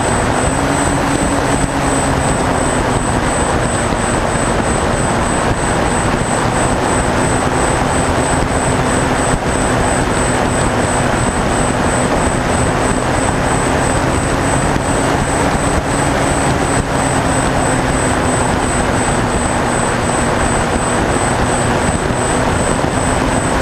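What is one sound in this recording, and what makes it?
A small plane's engine drones steadily and loudly.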